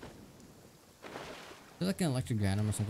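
Water splashes as a character swims.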